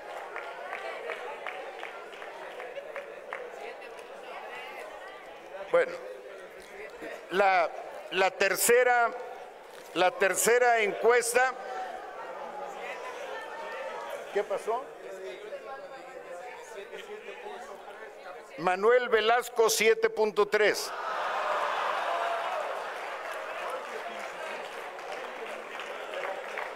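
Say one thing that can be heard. A crowd cheers and chants loudly.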